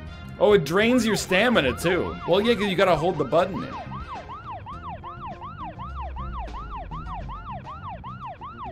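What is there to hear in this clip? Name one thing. A police siren wails rapidly up and down.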